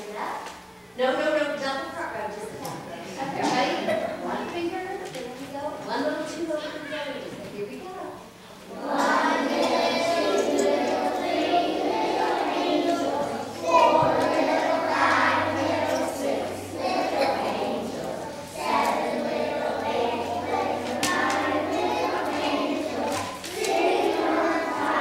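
A large group of children sings together in an echoing hall.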